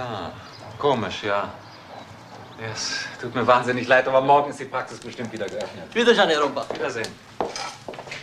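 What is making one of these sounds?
Two men talk with animation close by.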